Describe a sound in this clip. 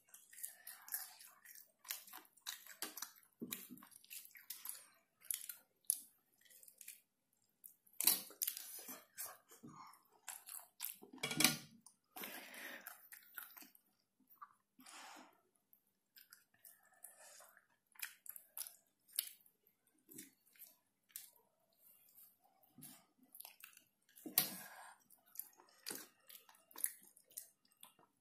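Crispy fried chicken crackles and tears apart in someone's fingers.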